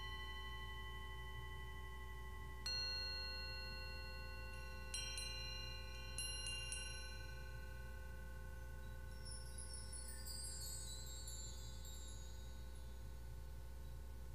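Metal singing bowls are struck and ring out with long, slowly fading tones.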